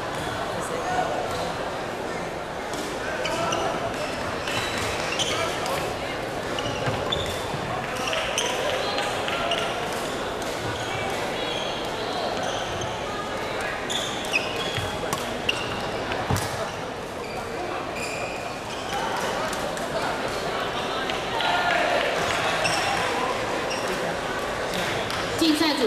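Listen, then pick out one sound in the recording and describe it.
Sports shoes squeak on a wooden court.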